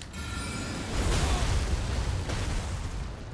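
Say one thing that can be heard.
A magical blast bursts with a loud rushing whoosh.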